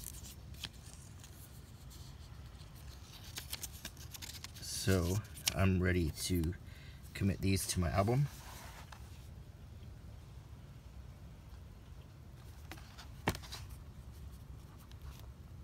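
Stiff paper crinkles and rustles close by as it is handled.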